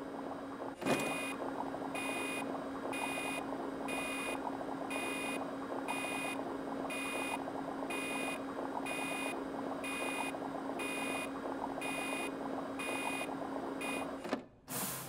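A machine beeps in a steady, even rhythm.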